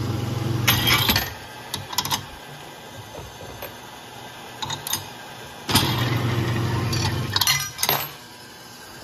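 A metal carousel clunks as it stops.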